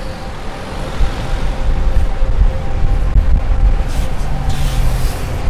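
A bus drives past close by with a loud engine rumble.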